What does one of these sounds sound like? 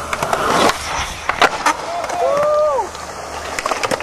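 A skateboard clacks and its wheels roll on concrete.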